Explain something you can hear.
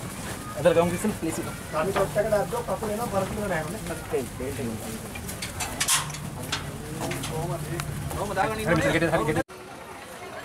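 Men talk close by with animation.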